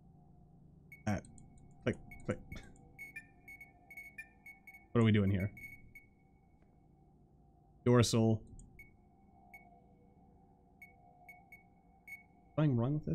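Soft electronic blips sound as game items are moved.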